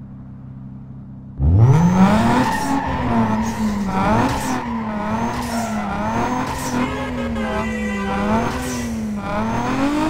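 A sports car engine idles, then roars and revs up and down as the car speeds along.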